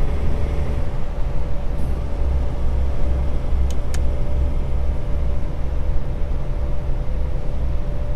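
A truck engine rumbles steadily at low revs.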